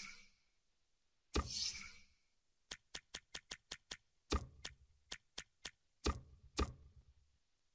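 Short electronic clicks tick in quick bursts.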